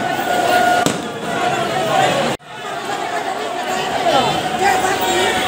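A large crowd of people chatters and calls out nearby.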